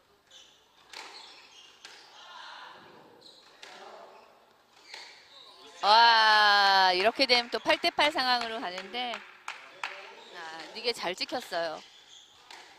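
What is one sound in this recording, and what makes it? A squash ball smacks off racquets and walls in a hard, echoing court.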